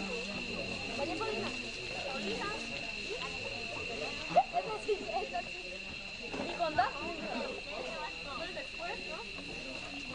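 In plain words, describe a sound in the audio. Young girls talk and chatter together outdoors.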